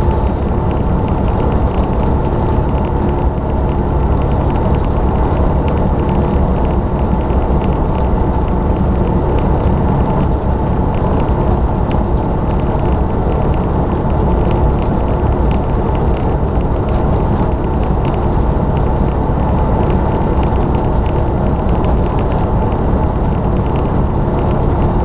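A truck engine drones steadily as it drives along a road.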